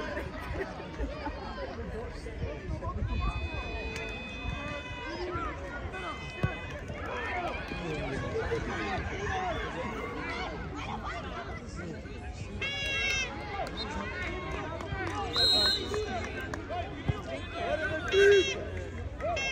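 Many children shout and call out across an open field outdoors.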